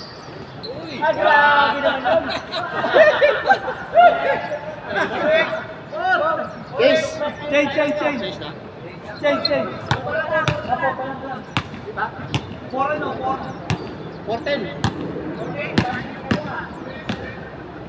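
Men call out and talk to each other nearby.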